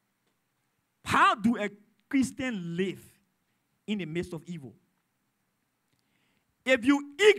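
A man speaks with emphasis in short bursts through a microphone.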